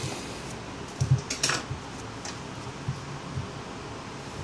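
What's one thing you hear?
A metal clamp clicks as it is adjusted.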